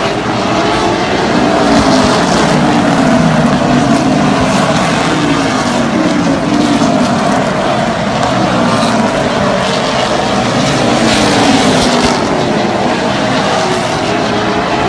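Loud race car engines roar and whine, rising and falling in pitch as cars speed past.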